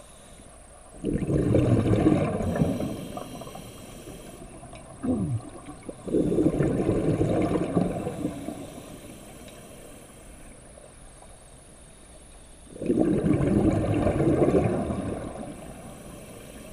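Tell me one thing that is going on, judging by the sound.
A scuba diver's exhaled bubbles rush and gurgle underwater.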